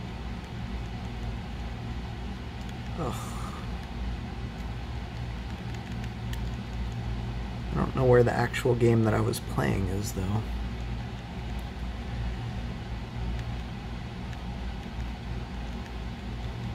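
Buttons on a handheld game console click softly as they are pressed.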